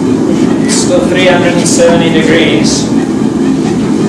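A middle-aged man speaks briefly and casually nearby.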